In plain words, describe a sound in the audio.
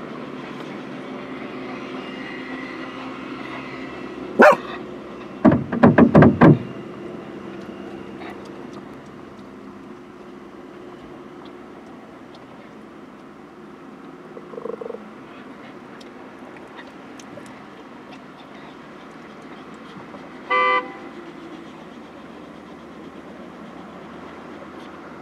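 Car engines hum as cars drive past through a roundabout.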